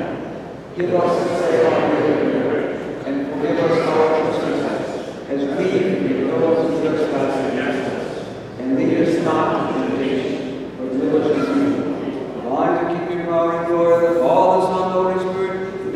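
An elderly man chants in a sung voice, echoing in a large reverberant hall.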